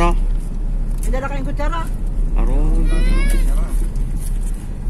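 Young women talk and laugh excitedly close by.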